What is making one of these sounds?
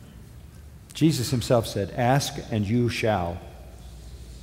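An elderly man speaks emphatically through a microphone.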